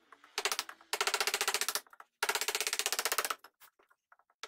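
A wooden mallet knocks on a chisel handle.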